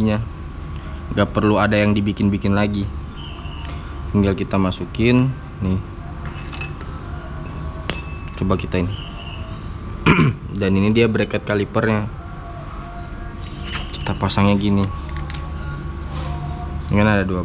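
Metal tools and parts clink as they are handled.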